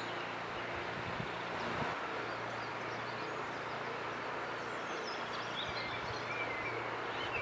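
A shallow river rushes steadily over stones.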